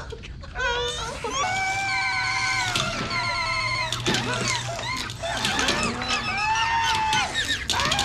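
A man groans and cries out in pain.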